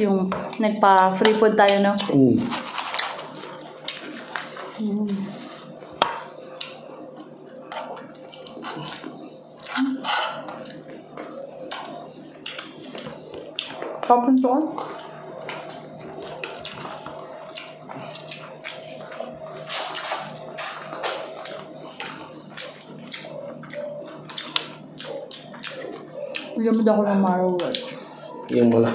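Crunchy food is chewed loudly close up.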